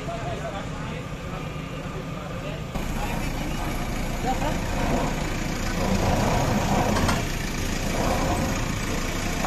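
Men talk loudly outdoors.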